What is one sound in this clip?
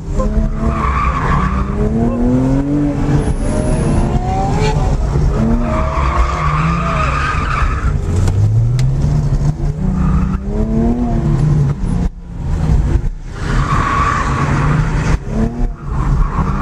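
A car engine revs up and down hard, rising and falling in pitch.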